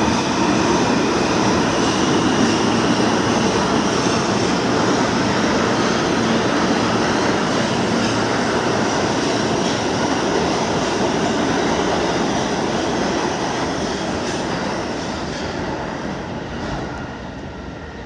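A subway train rumbles loudly through an echoing underground station and slowly fades away.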